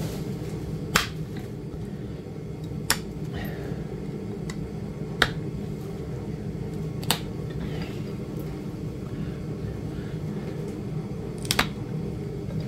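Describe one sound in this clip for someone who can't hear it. Sharp clicks and taps sound now and then as tools knock against horn.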